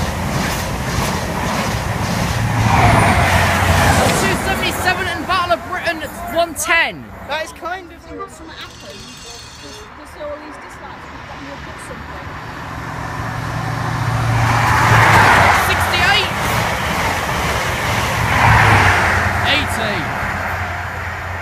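A train roars past close by at speed.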